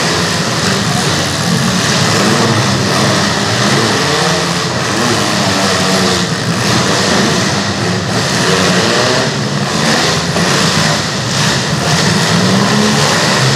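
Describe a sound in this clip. Several car engines roar and rev loudly in a large echoing hall.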